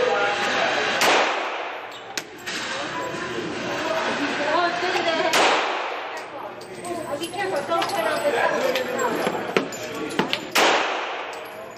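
A pistol fires single sharp shots that echo in a hard-walled room.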